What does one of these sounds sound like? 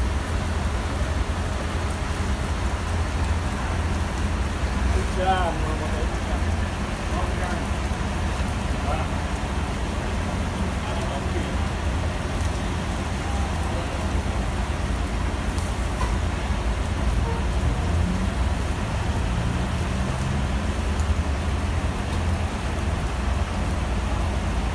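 Rain falls steadily outdoors on wet pavement.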